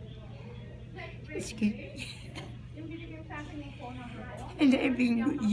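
An elderly woman laughs heartily close by.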